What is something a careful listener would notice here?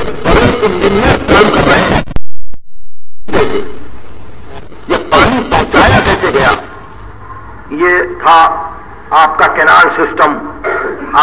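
An elderly man speaks with animation, heard through an old recording.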